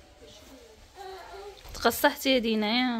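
A young girl speaks close by in a small voice.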